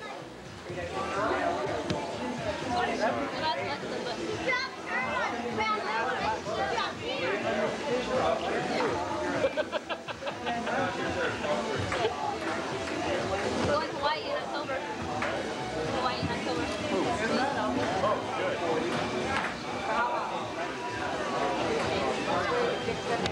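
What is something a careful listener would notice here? Several adults chat and talk over each other nearby.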